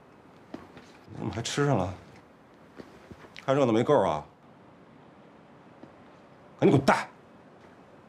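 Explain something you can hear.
A man speaks sharply, close by.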